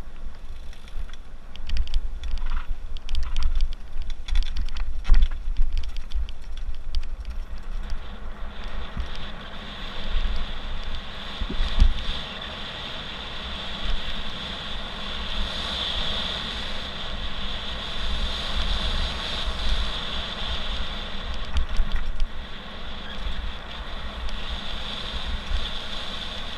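Bicycle tyres crunch and rattle over a gravel track.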